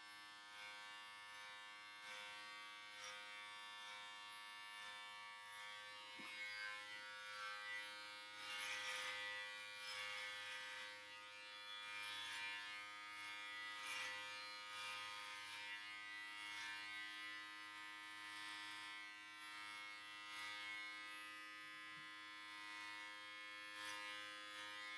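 Electric hair clippers buzz steadily, close by, as they cut short hair.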